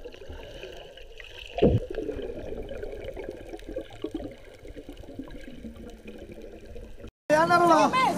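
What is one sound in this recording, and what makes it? Water swirls and bubbles, muffled underwater, as a swimmer kicks.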